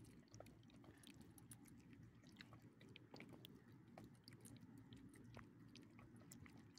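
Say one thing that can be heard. A small dog licks and chews food from a hand with soft, wet clicks.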